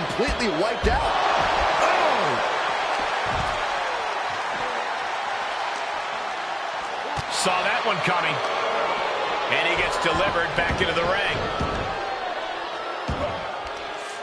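Heavy blows thud and slam.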